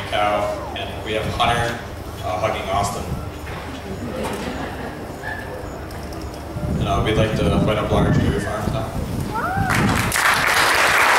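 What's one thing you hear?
A young man speaks into a microphone over loudspeakers.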